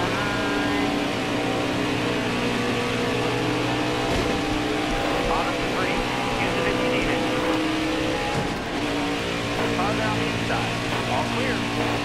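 Stock car V8 engines roar at full throttle in a racing video game.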